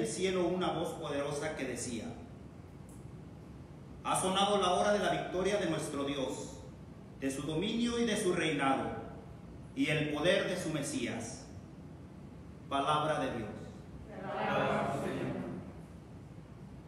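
A man speaks calmly into a microphone in a small echoing room.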